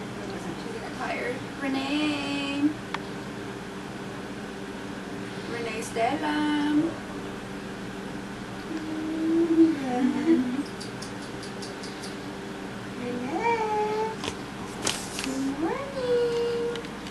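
A woman speaks softly in a high, singsong voice close by.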